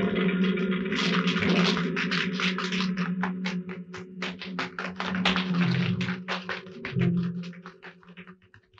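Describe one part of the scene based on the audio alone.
Footsteps tap quickly down wooden stairs.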